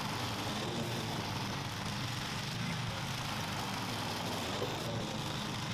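A lawn mower engine drones steadily close by.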